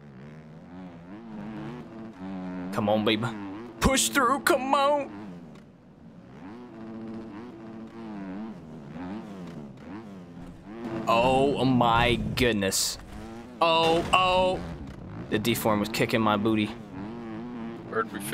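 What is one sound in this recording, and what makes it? A motorbike engine drones and revs up and down throughout.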